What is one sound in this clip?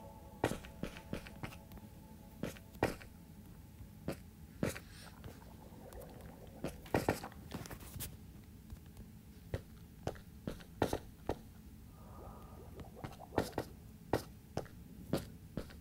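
Footsteps tap unevenly on hard stone.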